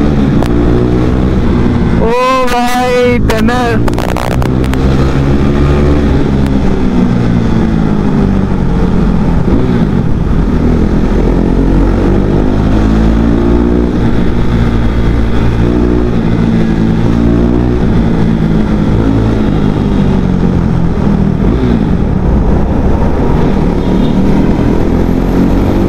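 A motorcycle engine hums and revs up and down as it rides.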